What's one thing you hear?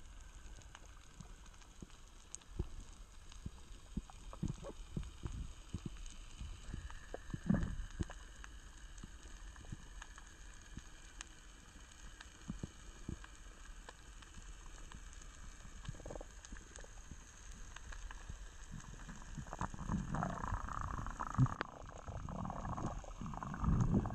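Tiny clicks and crackles sound steadily all around underwater.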